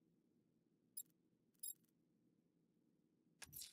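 Short electronic blips sound now and then.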